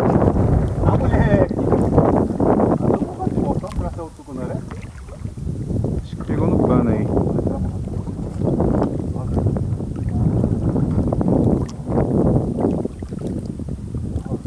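A fishing net rustles as a man gathers it in his hands.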